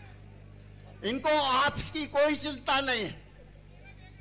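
A middle-aged man speaks loudly into a microphone over a loudspeaker.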